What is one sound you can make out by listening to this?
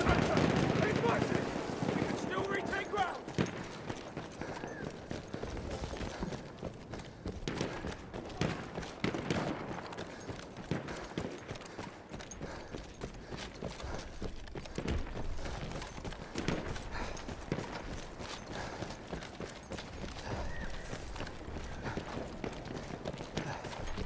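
Footsteps crunch quickly on gravel and dirt.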